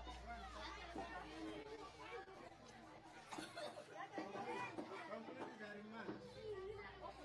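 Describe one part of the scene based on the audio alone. A group of young people sing together.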